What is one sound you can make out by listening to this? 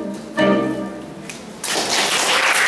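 A saxophone group holds a final chord in an echoing hall.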